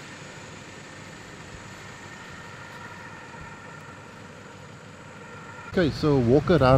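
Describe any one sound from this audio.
A gas torch hisses steadily.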